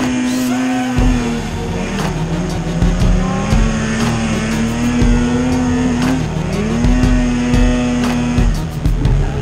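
A snowmobile thumps and rattles over bumpy snow.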